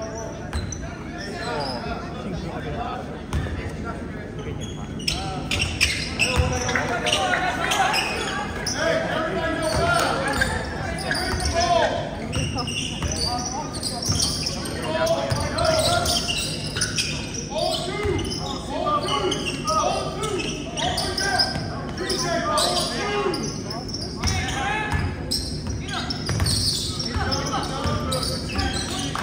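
Spectators and players shout and call out around the gym.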